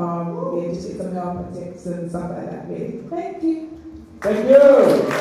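A woman sings through a microphone.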